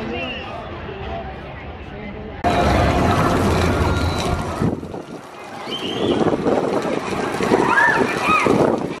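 A roller coaster rumbles and clatters along its track.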